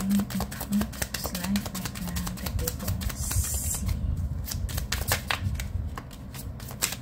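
Playing cards riffle and shuffle in a pair of hands.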